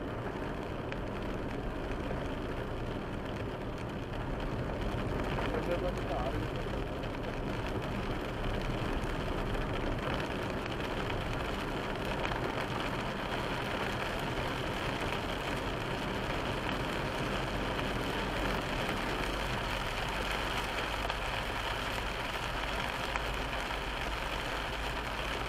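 Rain patters steadily on a car's windscreen.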